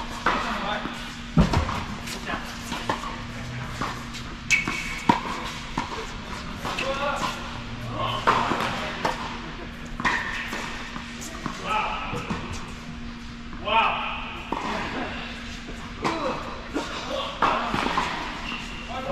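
Men call out and talk across the court.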